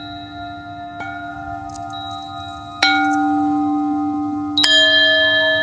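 A mallet strikes a metal singing bowl with a bright ring.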